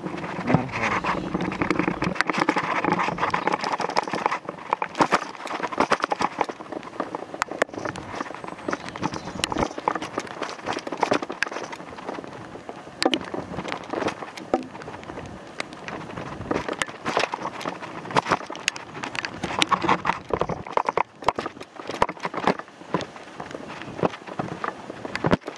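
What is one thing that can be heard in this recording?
Footsteps crunch quickly on a wet gravel path.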